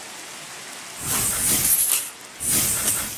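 A creeper hisses.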